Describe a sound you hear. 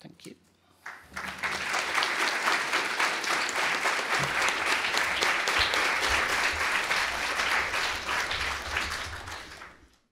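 A large audience applauds in a big room.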